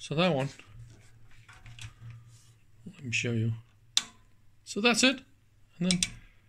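A knob on a device clicks as it is turned.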